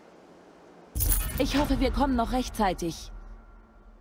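A young woman speaks calmly and clearly, heard close up.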